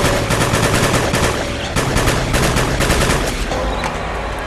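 A video game gun fires several shots.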